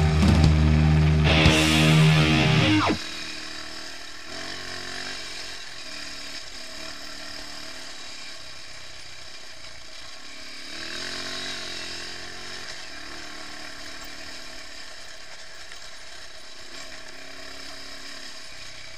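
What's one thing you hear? A motorcycle engine hums close by, its pitch rising and falling as it rides.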